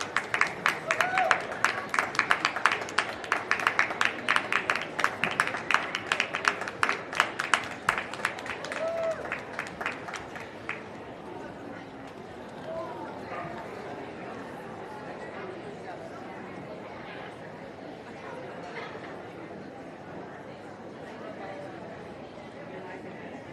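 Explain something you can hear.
A crowd murmurs in the background.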